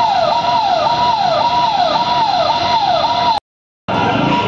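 A fire engine siren wails up and down.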